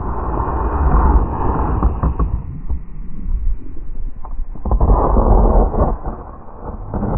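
A snowboard scrapes and hisses over packed snow.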